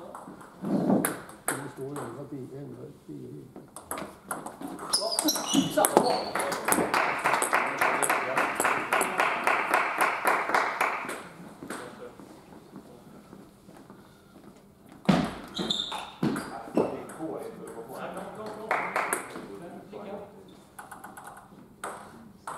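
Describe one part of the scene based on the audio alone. A table tennis ball clicks back and forth between paddles and the table in an echoing hall.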